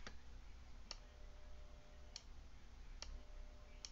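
Key beeps sound as buttons are pressed on a radio's keypad microphone.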